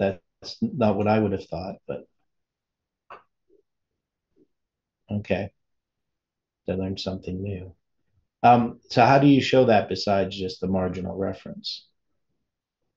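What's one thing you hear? An older man speaks calmly and close to a microphone, in short bursts with pauses.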